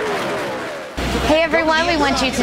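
A young woman speaks cheerfully, close up.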